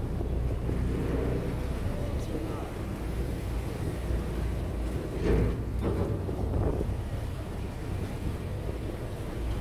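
Wind buffets steadily across open water.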